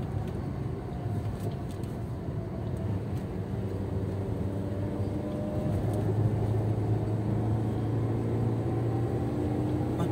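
A car engine hums steadily from inside the car and grows a little louder.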